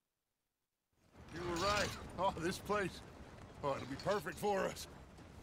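A horse-drawn wagon creaks and rattles along.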